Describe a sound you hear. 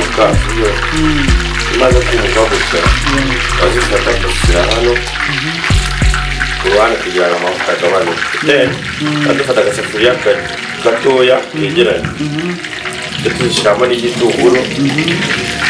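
Oil sizzles and bubbles in a frying pan.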